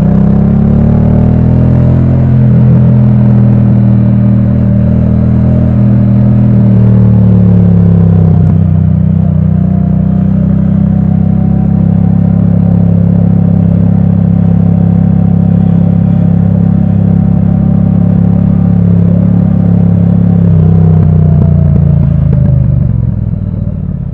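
A motorcycle engine rumbles up close, rising and falling in pitch as it shifts gears.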